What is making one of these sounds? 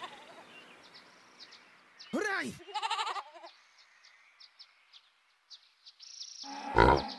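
Soft paws patter quickly as a big cat runs over grass.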